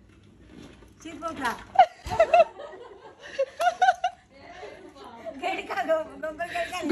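A young woman laughs and talks with animation close by.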